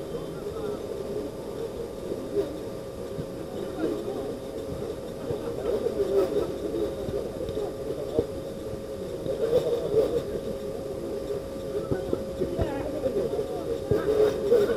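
Players shout and call out to each other across an outdoor pitch.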